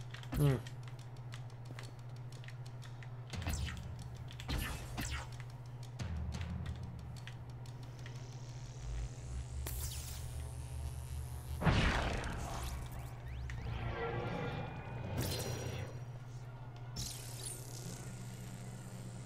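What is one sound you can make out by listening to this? Energy blasts whoosh and crackle in bursts.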